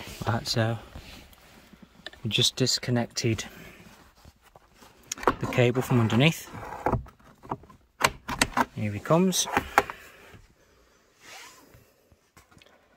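Metal parts clink and rattle close by as they are handled.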